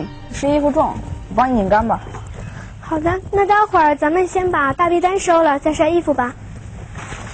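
A young man speaks in a light, friendly voice.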